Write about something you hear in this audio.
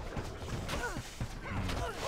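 A fiery magic blast roars.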